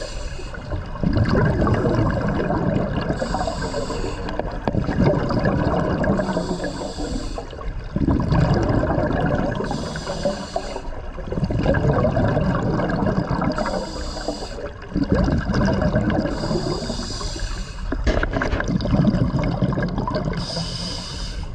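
Exhaled air bubbles rumble and gurgle from a scuba regulator.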